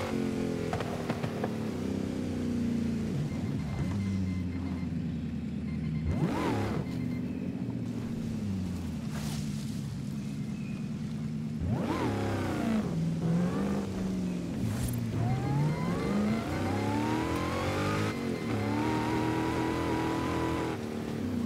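Tyres rumble over rough dirt.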